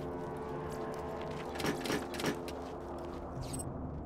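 Metal locker doors clang open.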